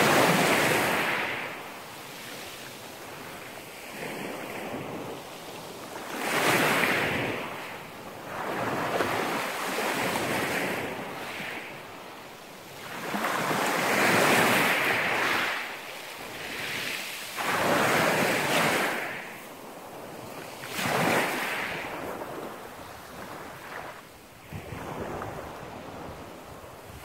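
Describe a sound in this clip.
Small waves wash up onto a pebble beach and break in repeated surges.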